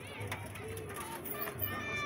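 A child slides down a metal slide.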